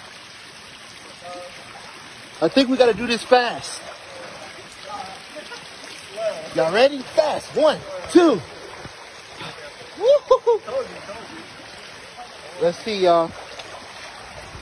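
A shallow stream trickles over rocks.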